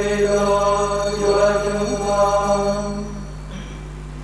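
Several men sing a slow chant together in an echoing hall.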